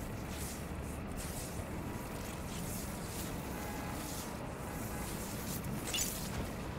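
Electricity crackles and fizzes steadily.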